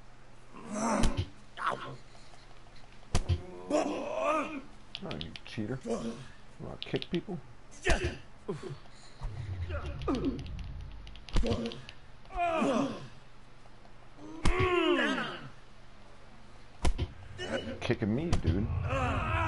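Fists thump against a body.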